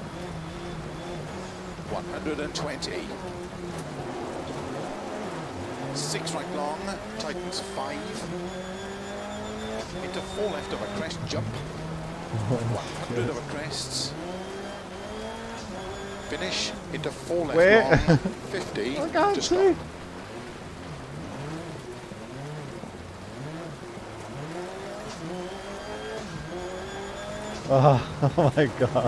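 A car engine revs up and down through gear changes.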